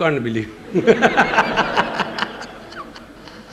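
A middle-aged man laughs heartily into a microphone.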